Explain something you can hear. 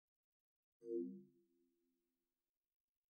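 A deep electronic chime rings out and quickly fades.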